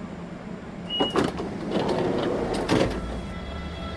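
Train doors hiss and thump open.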